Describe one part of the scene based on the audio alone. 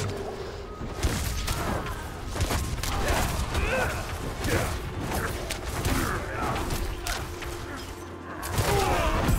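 Blows and impacts thud repeatedly.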